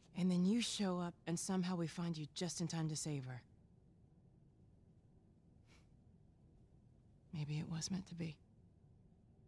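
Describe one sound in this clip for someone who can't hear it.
A woman speaks quietly and earnestly.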